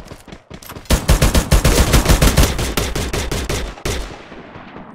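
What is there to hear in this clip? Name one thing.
A rifle fires.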